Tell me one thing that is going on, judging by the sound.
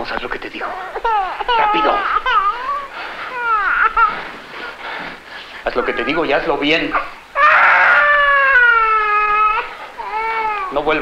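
A baby cries loudly nearby.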